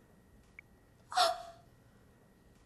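A young woman giggles softly.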